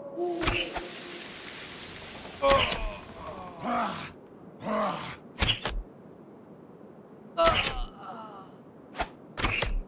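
Retro video game sound effects of attacks and hits play in short bursts.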